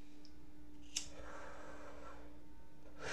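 A lighter flame hisses softly.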